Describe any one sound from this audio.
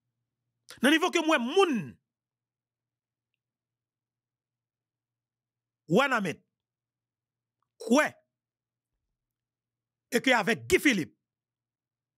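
A man speaks with animation, close into a microphone, in short bursts.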